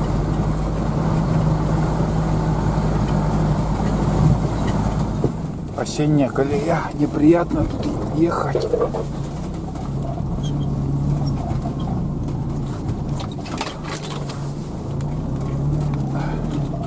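A vehicle engine drones steadily from inside the cab.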